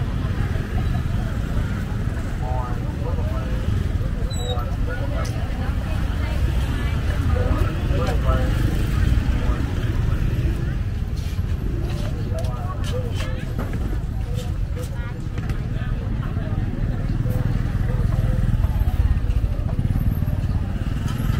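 Many people talk at once in a busy outdoor crowd, nearby and far off.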